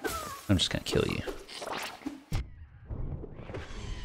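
A blade slashes with a sharp swish and impact.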